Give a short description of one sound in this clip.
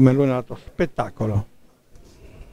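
A man speaks loudly close by.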